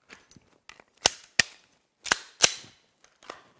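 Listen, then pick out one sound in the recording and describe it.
Pistol shots ring out in quick bursts indoors.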